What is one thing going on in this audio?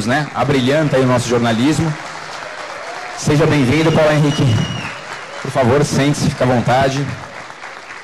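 A man speaks loudly and with animation through a loudspeaker.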